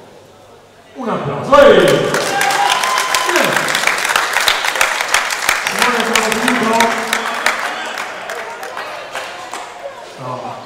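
A crowd claps and cheers loudly in a large echoing hall.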